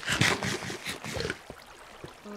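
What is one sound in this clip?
Food crunches in quick, loud bites.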